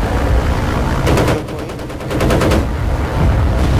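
A machine gun fires in rapid bursts.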